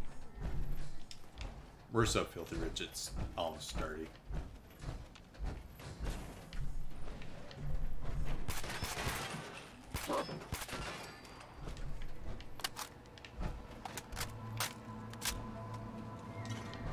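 Heavy metal footsteps thud steadily.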